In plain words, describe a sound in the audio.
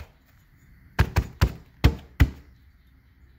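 A metal part knocks against a hard surface as it is handled.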